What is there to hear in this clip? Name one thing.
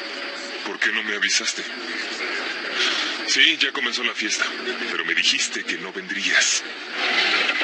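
A man speaks into a phone in a low, tense voice.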